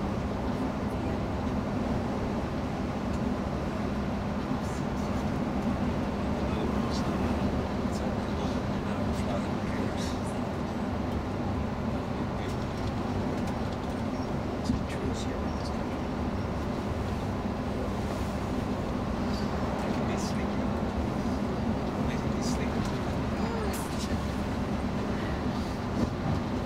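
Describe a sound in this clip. Tyres hum and roar on the road surface.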